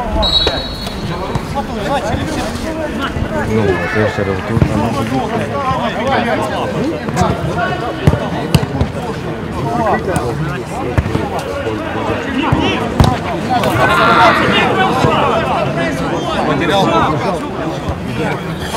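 A crowd of young men and women chatters and shouts outdoors.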